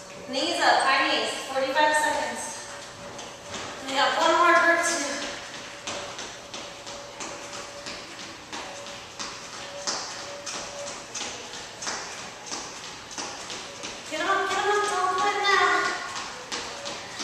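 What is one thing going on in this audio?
A young woman talks with energy into a headset microphone.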